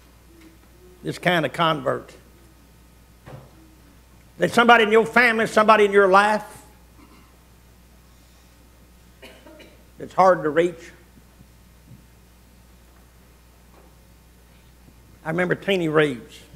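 A man preaches through a microphone in short bursts with long pauses, his voice echoing in a large room.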